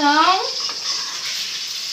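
A metal spoon scrapes in a pan.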